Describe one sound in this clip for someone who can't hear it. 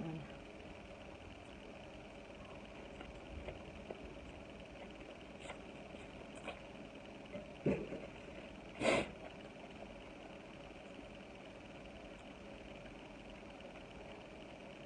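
Leaves tear as a woman peels them off.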